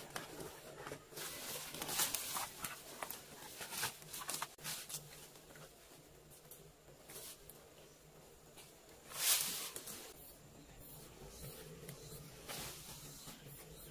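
Dry branches and leaves rustle and snap as a person pushes through undergrowth.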